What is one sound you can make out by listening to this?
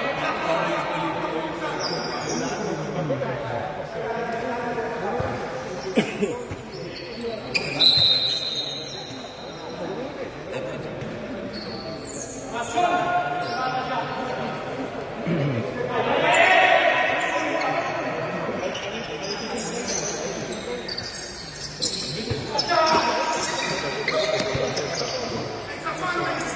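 Spectators chatter and call out in a large echoing hall.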